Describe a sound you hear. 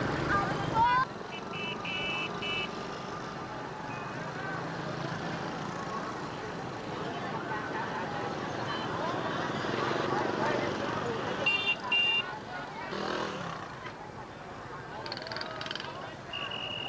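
Motorbike engines putter past.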